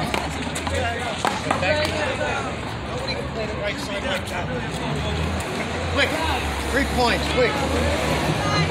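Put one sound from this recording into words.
Several men talk and call out to each other nearby, outdoors.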